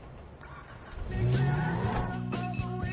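A car engine starts and revs.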